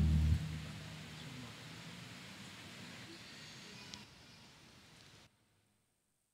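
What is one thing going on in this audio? A large choir's last sung note fades away in an echoing hall.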